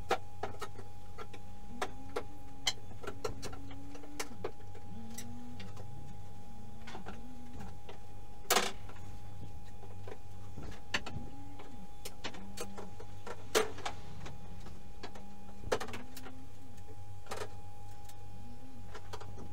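A metal bar knocks and taps against wooden floorboards.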